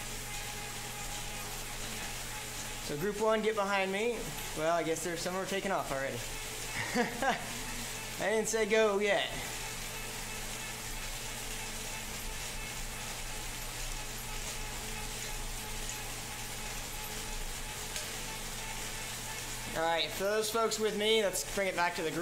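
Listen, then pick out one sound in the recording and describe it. An indoor bike trainer hums steadily.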